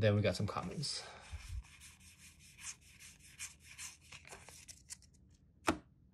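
Playing cards slide and flick against each other in the hands.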